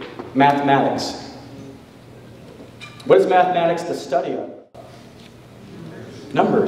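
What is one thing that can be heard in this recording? A man speaks calmly into a microphone over a loudspeaker in a large echoing hall.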